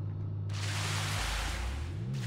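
A pressure washer sprays water in a hissing jet.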